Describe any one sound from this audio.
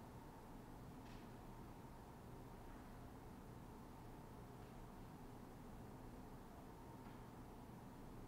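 A small handbell rings softly a few times.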